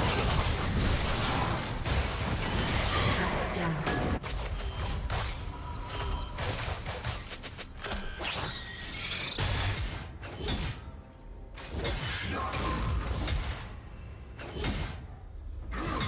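Magic spells whoosh and crackle in a video game fight.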